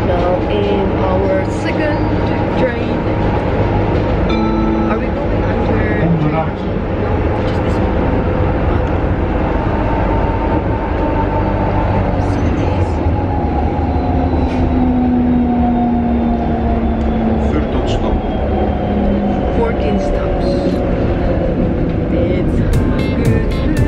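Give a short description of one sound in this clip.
A tram rumbles steadily along.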